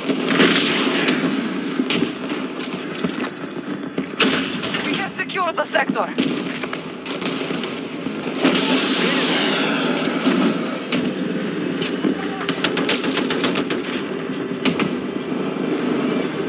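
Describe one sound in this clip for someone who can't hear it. A tank engine rumbles and clanks.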